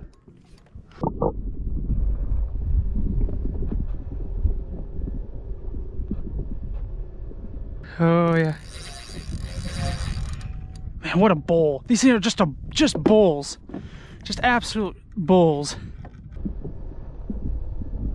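Water gurgles and rumbles, heard from underwater.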